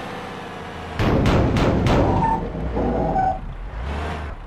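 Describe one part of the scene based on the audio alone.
A backhoe loader crashes and thuds as it tumbles over on grass.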